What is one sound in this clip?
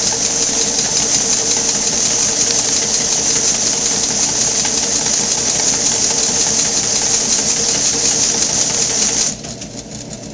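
A machine whirs loudly and steadily.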